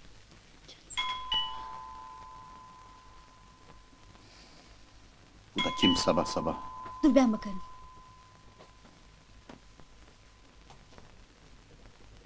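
An alarm clock rings with a steady electronic beep.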